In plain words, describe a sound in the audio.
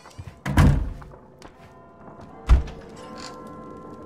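A wooden wardrobe door creaks open.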